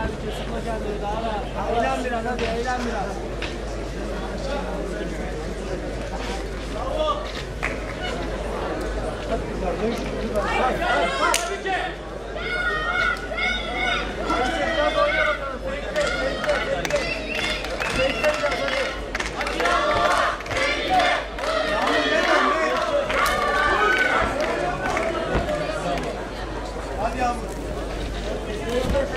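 A crowd of spectators shouts and cheers in a large echoing hall.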